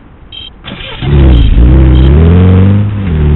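A heavy vehicle's engine roars and revs up.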